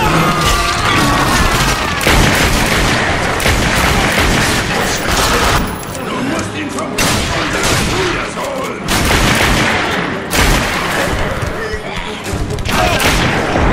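A pistol fires in loud, rapid shots.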